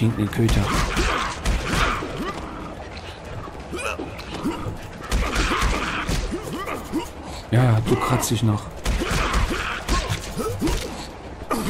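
Blades swish and strike in quick bursts of fighting.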